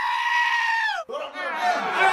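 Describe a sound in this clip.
A goat bleats loudly.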